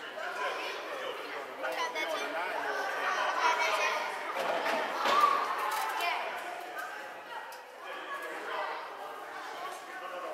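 Children's voices chatter and call out in a large echoing hall.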